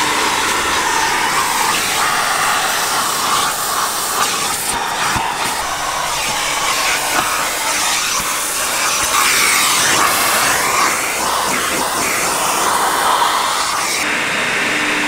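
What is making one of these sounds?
A vacuum cleaner roars steadily close by.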